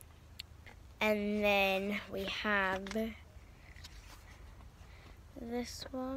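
Paper pages rustle as a book's pages are turned.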